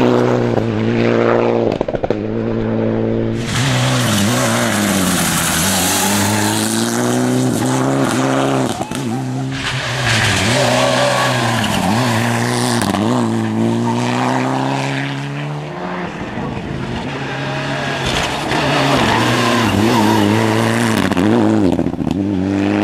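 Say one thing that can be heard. A rally car engine roars and revs hard through bends.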